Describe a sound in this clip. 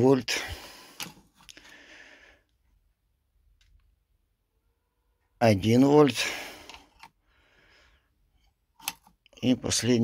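Metal meter probes click against battery terminals.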